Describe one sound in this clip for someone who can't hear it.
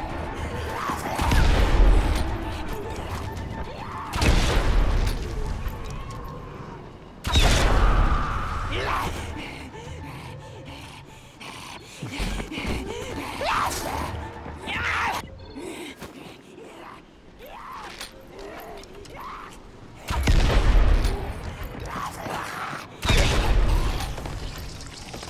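Zombies snarl and growl.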